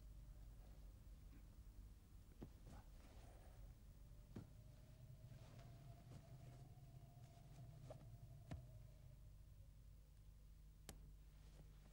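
Cloth rustles softly as a man adjusts his robe.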